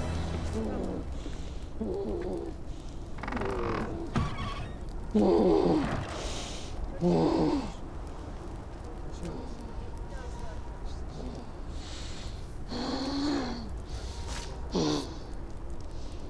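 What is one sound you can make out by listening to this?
A man speaks in a deep, calm voice close by.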